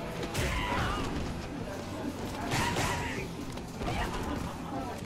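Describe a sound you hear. Punches and kicks land with heavy, sharp thuds.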